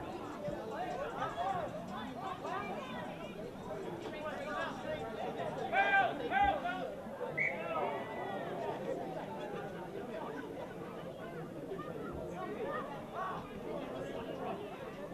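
A crowd of spectators shouts and cheers from nearby.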